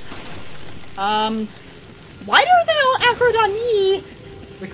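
A young woman squeals and laughs excitedly into a headset microphone.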